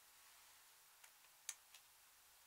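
A plastic tube clicks and rattles in a hand.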